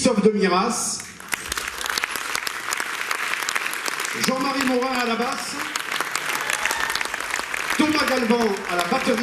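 A small band plays jazz on a stage.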